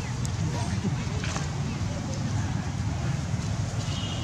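Monkeys tussle and roll in rustling grass.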